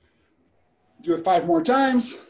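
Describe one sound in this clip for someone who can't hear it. A young man speaks loudly and close, heard through a laptop microphone.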